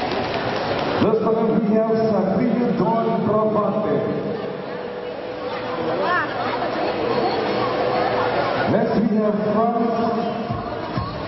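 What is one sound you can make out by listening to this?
A man announces through a loudspeaker in a large echoing space.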